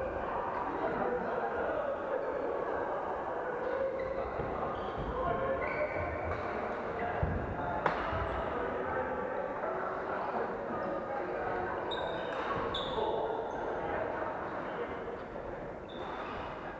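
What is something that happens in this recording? Men and women chatter and call out across a large echoing hall.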